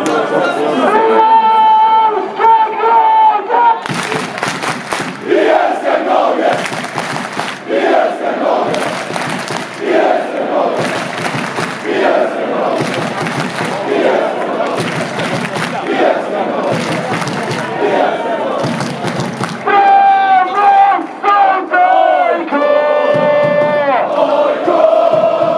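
Fans close by shout and cheer.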